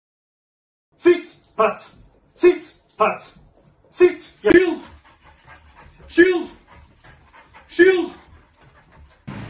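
Dogs bark sharply, indoors.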